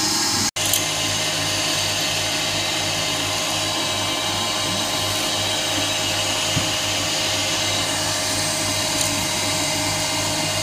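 A milling machine whirs steadily as its cutter grinds into metal.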